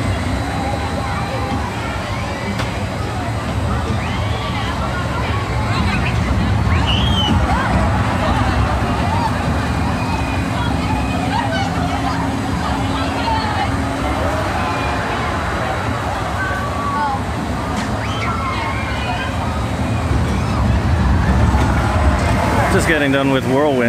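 Children and adults shout and chatter in a crowd outdoors.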